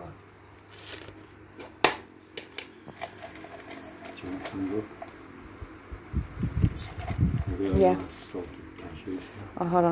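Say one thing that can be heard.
Plastic containers crinkle and click as hands handle them.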